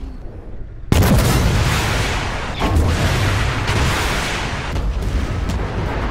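Explosions and gunfire crackle nearby.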